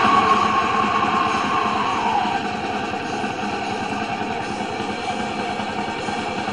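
A portable radio hisses with loud static, with a whistling tone that slides down as it is tuned.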